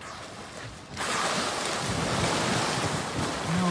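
Dolphins splash as they leap through the water nearby.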